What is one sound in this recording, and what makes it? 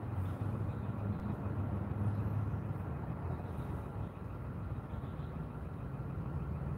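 A car engine idles nearby with a low, steady rumble.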